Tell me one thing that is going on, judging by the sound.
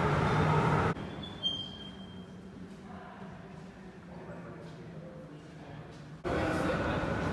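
An escalator hums and rattles steadily.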